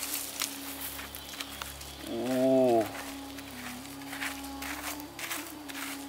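A hand scrapes and rustles through loose dirt and pebbles.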